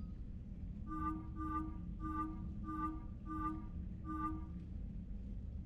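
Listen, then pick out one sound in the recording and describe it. Short electronic menu beeps repeat at an even pace.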